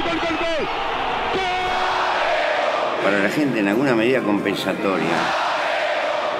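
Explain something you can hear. A huge stadium crowd roars and cheers loudly.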